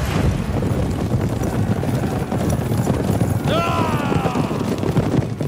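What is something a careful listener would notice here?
Many horses gallop hard over dry ground, hooves drumming.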